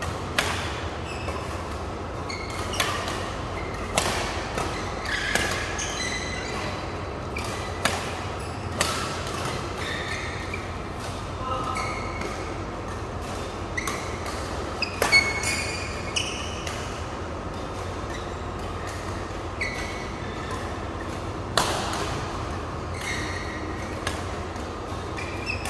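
Rackets smack shuttlecocks in sharp, irregular hits that echo through a large hall.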